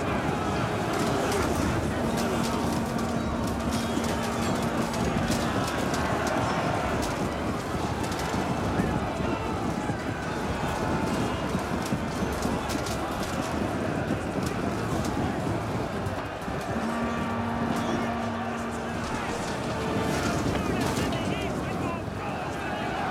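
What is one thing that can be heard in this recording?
A large crowd of soldiers roars and clamours in battle.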